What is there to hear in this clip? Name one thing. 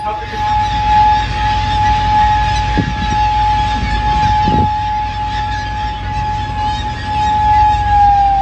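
Seagulls call overhead.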